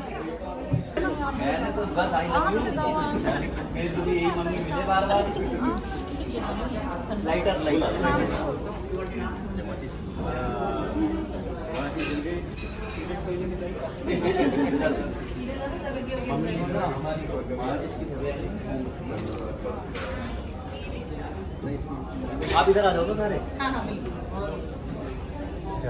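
Several men and women talk together nearby.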